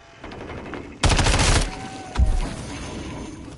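Gunfire bursts loudly in short volleys.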